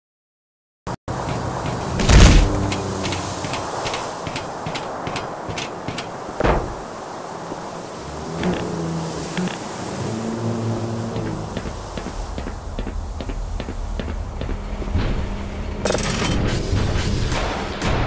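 Footsteps clang on a metal grating.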